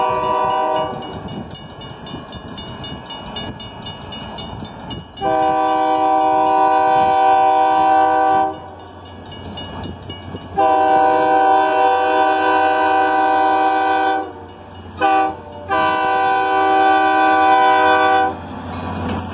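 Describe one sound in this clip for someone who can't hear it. A locomotive horn blows long, loud blasts nearby.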